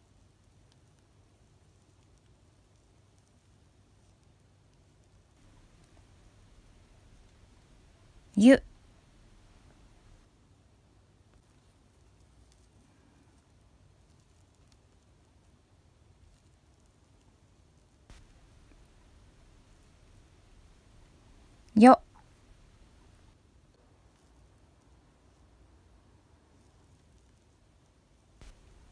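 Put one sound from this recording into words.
A soft brush swishes lightly across paper.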